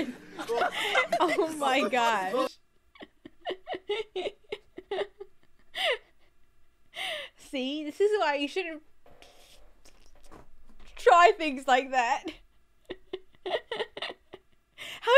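A young woman laughs into a microphone.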